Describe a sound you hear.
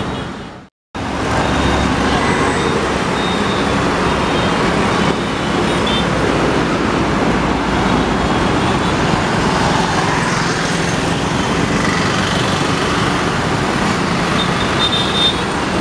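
Cars, trucks and motorbikes rush past close by.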